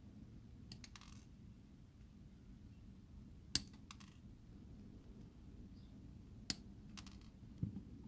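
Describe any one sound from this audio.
Small cutters snip through plastic with sharp clicks.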